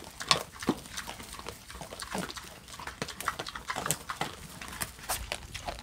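Pigs snuffle and rustle through dry straw.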